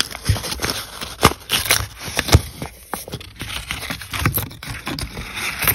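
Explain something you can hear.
Paper crinkles and tears as a coin roll is unwrapped.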